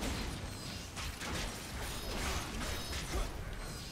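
A fiery blast bursts.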